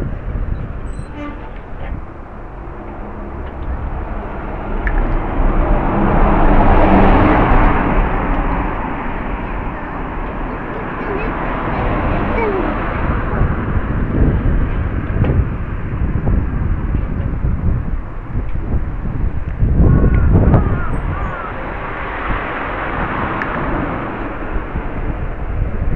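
Bicycle tyres roll over asphalt.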